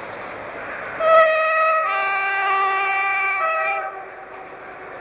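A train horn sounds.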